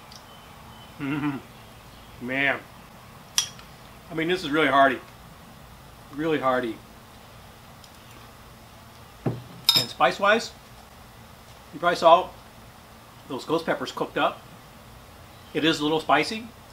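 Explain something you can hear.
A man talks calmly and clearly close by.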